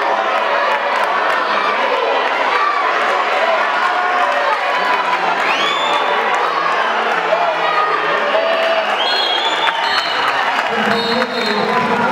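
A large crowd murmurs and cheers in an echoing hall.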